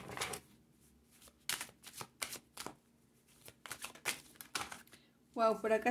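Cards shuffle and slap softly in a pair of hands.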